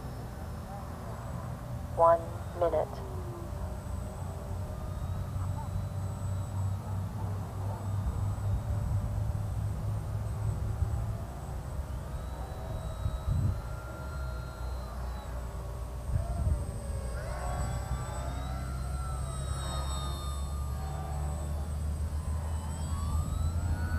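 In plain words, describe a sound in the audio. A model plane's engine buzzes overhead, rising and falling in pitch and growing louder as the plane swoops low and close.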